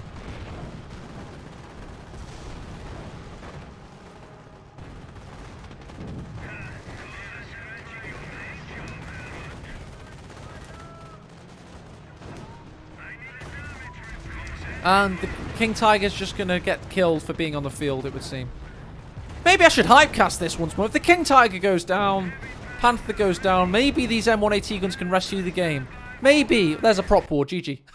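Explosions boom and gunfire rattles.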